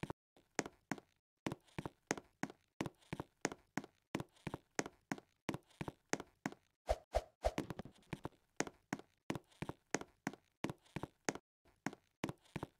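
Quick footsteps tap steadily on a hard floor.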